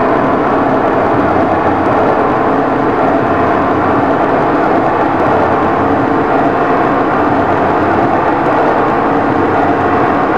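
A train rumbles steadily along the tracks through a tunnel.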